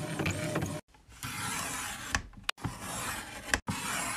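A paper trimmer blade slices through paper.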